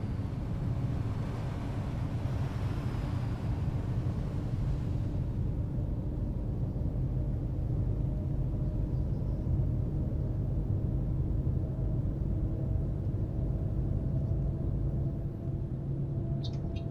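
A bus engine hums low and steady while driving.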